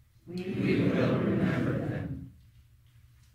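A congregation sings together in an echoing hall and holds a final note.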